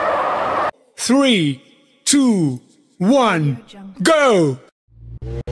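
Countdown beeps sound four times, each falling in pitch.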